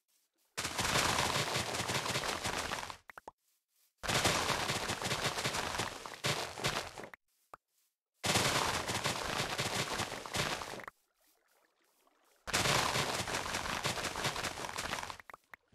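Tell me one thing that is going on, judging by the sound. Crisp plant stalks snap and rustle as they are broken in quick succession.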